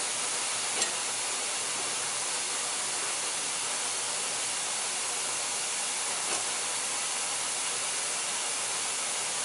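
A roller conveyor runs with a steady mechanical whir.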